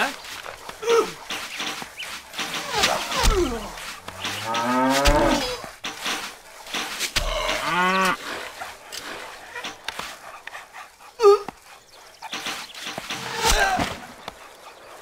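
A man talks with animation through a microphone.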